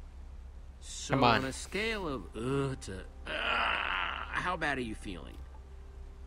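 A young man speaks with a worried, animated tone.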